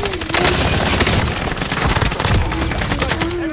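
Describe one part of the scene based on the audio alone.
A rifle fires in rapid shots.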